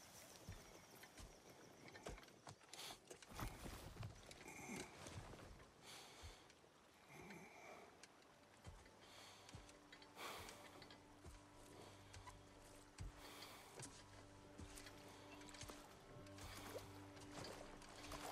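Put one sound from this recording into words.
Waves lap gently on a shore.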